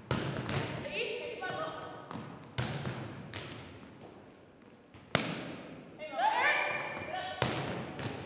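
Sneakers squeak on a wooden gym floor.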